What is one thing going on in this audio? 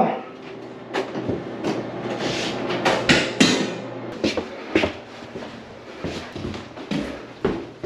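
Footsteps tap on a hard floor in an echoing hallway.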